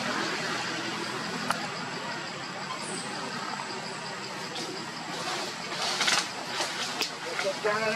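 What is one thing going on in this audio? A young monkey chews and tears at a leaf.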